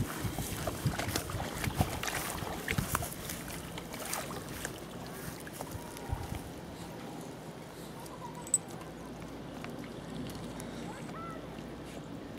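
A small dog splashes as it wades through shallow water.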